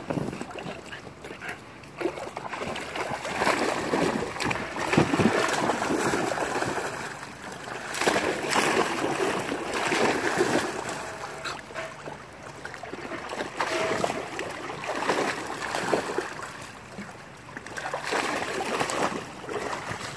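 Water splashes as a dog wades and paddles in shallow water.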